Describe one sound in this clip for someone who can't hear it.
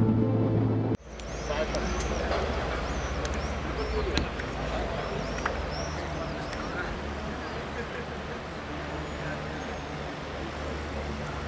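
A group of men talk quietly outdoors at a distance.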